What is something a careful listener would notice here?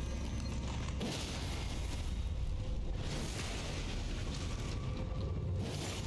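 A sword slashes and clangs against bones.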